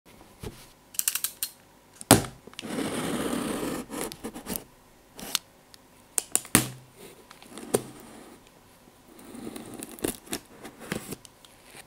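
Gloved hands tap and scratch on a cardboard box close to a microphone.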